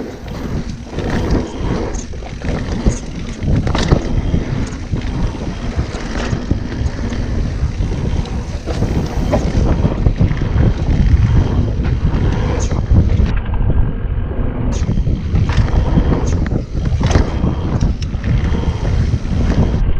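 Wind rumbles loudly over a microphone.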